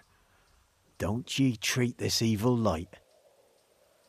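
A second man speaks calmly in a low voice.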